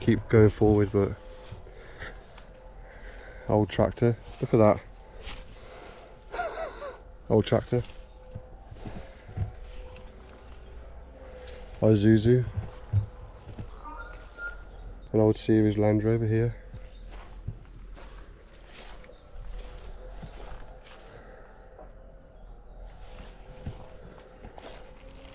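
Footsteps crunch through dry grass.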